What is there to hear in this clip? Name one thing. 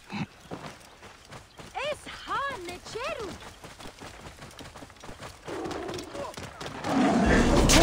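A horse's hooves thud as it gallops along a dirt track.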